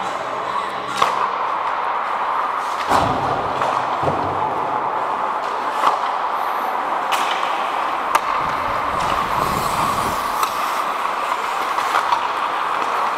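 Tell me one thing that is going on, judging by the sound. Hockey sticks clack against pucks and the ice.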